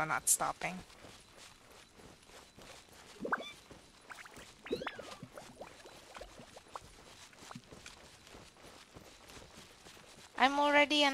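Light footsteps patter quickly on a stone path.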